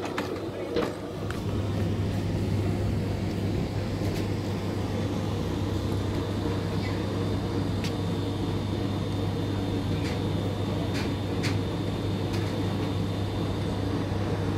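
A steady low engine hum drones from a moored yacht nearby.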